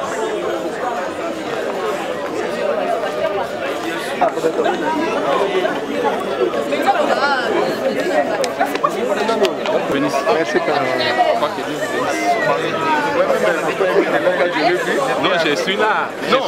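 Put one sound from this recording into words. A crowd chatters loudly outdoors.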